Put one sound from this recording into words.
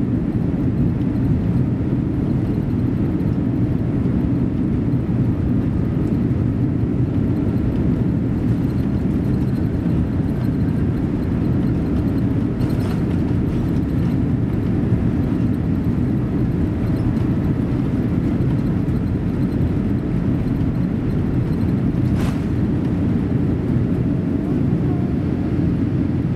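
An airliner's wheels rumble over the runway.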